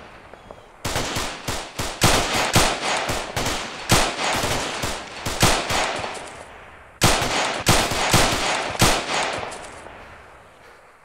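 A rifle fires in rapid bursts, with shots echoing.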